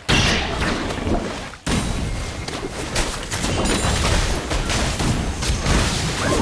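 Magic blasts and sword strikes crash in a fast game battle.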